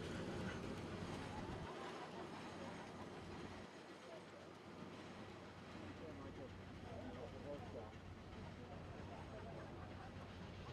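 A steam locomotive chuffs heavily as a train pulls away outdoors.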